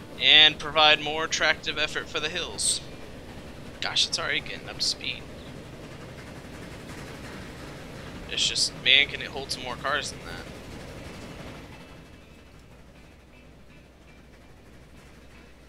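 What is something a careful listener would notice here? A steam locomotive chugs along the tracks.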